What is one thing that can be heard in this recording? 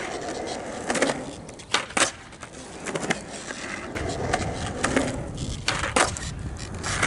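A skateboard clatters as it lands on concrete.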